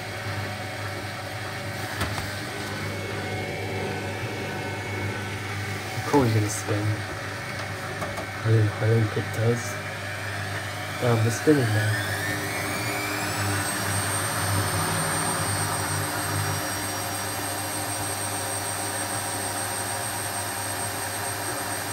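A washing machine drum turns with a steady low hum.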